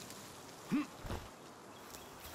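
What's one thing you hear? A body lands with a heavy thud after a drop.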